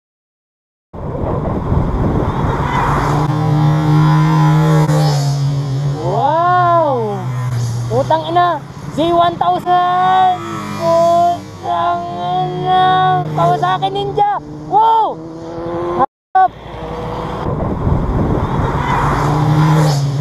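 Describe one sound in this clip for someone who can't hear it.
A motorcycle engine hums and revs steadily nearby.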